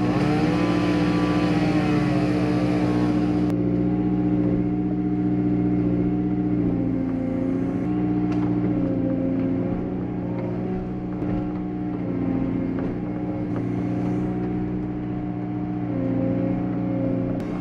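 An excavator engine hums steadily close by, its pitch rising and falling as the hydraulics work.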